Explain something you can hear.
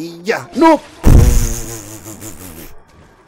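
A heavy blow lands with a loud thud.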